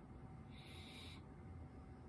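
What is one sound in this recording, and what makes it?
A man inhales from a vape pen.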